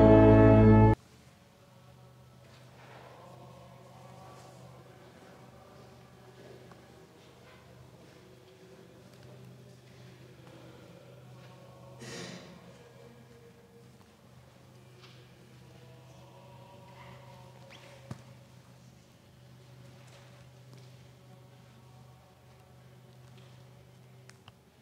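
A man chants softly in an echoing hall.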